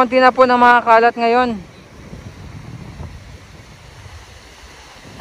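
Small waves wash gently onto a sandy shore.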